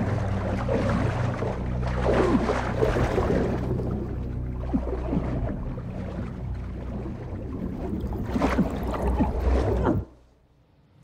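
Bubbles gurgle underwater.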